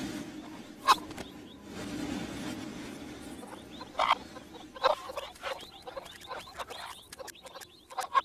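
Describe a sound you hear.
Chickens cluck.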